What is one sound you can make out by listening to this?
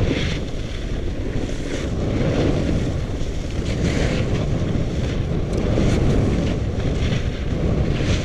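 Wind rushes loudly past, as if over a moving microphone outdoors.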